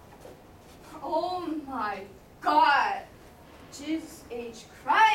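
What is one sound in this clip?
Young women speak with animation, close by.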